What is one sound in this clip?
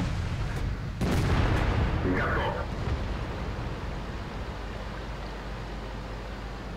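Water splashes and churns around a moving tank.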